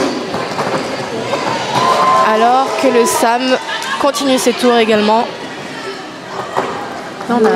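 Roller skates roll and scrape across a wooden floor in an echoing hall.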